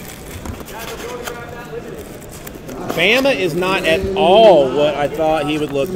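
Foil wrappers crinkle and tear as hands open packs of cards.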